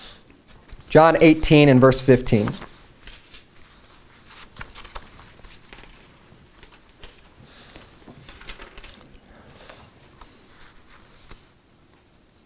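A man reads aloud steadily through a microphone.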